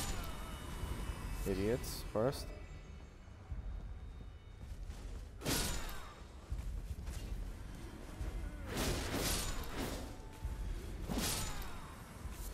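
A curved sword swishes through the air.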